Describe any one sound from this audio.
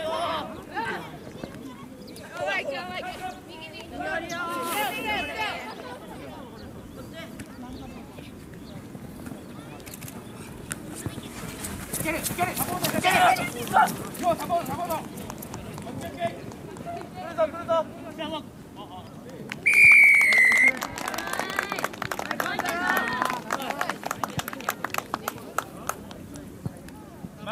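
Spectators shout and cheer outdoors from the sideline.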